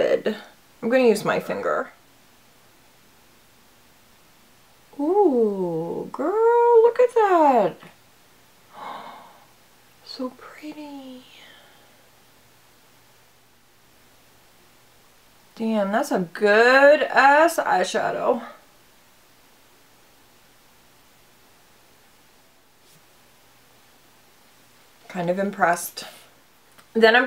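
A young woman talks calmly and closely into a microphone, in short bursts with pauses.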